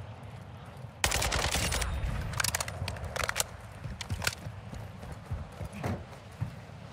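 A rifle fires sharp, echoing shots.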